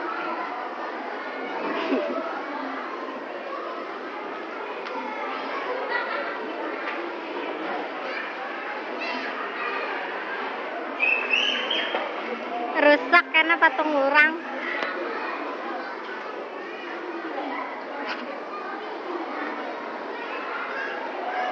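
A crowd chatters in a busy, echoing hall.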